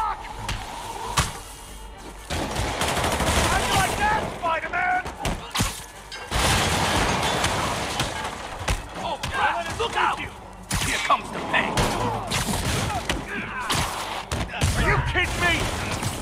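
Punches land with heavy thuds during a brawl.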